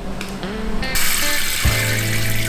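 Water runs from a tap and splashes.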